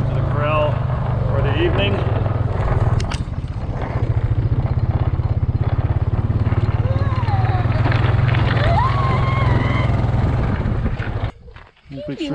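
An engine idles with a steady low rumble and then stops.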